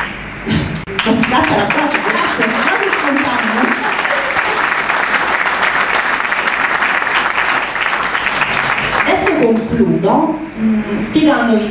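A woman speaks with animation through a microphone over loudspeakers in an echoing hall.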